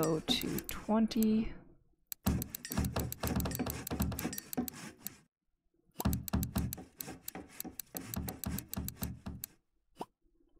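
Game menu clicks sound in quick bursts.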